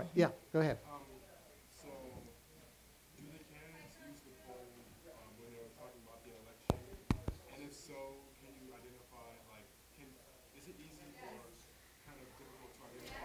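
A woman speaks quietly from farther away.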